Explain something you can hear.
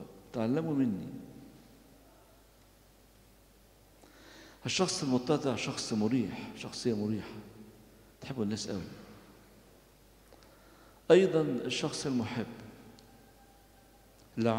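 An elderly man speaks slowly and solemnly into a microphone, with pauses, in an echoing hall.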